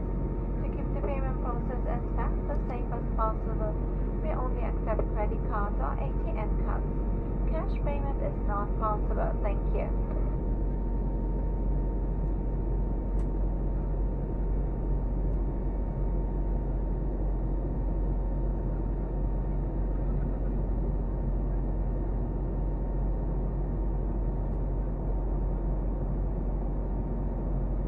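A jet engine roars steadily in the cabin of a plane.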